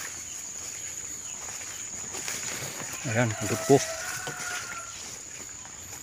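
Leaves and tall grass rustle softly in a light breeze.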